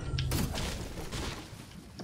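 A pickaxe strikes a wooden object with a dull thud.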